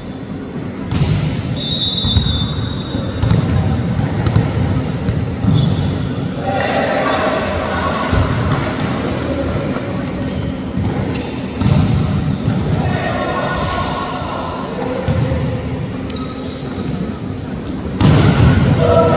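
A volleyball is struck with sharp smacks that echo in a large hall.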